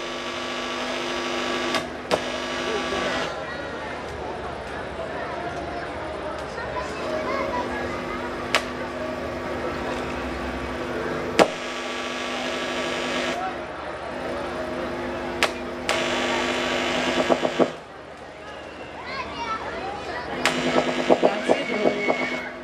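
A folk band plays lively music.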